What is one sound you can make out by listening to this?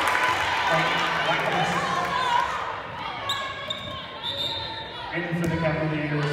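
A volleyball thumps off a player's hands.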